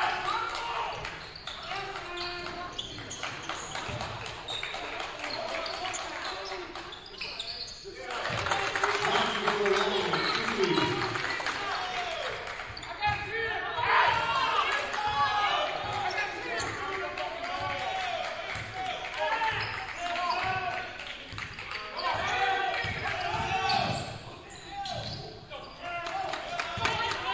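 Young players shout to each other in an echoing gym.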